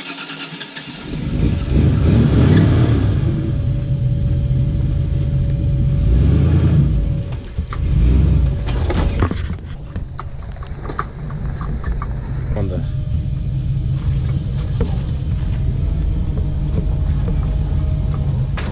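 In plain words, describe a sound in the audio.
A truck engine rumbles and revs nearby.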